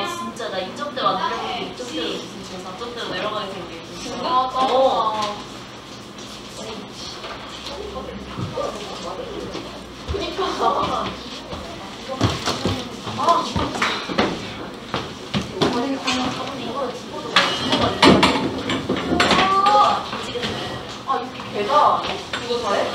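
Young women talk and chatter nearby.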